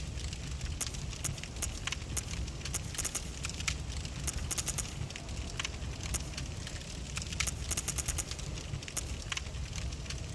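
Short menu ticks click quickly, one after another.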